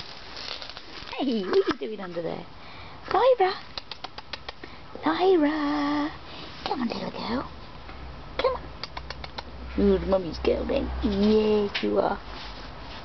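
A man talks softly and coaxingly close by.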